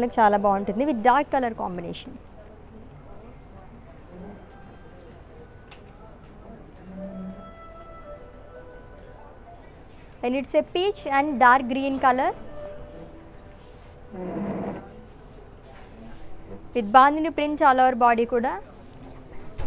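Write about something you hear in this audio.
A young woman speaks close by in a bright, lively voice.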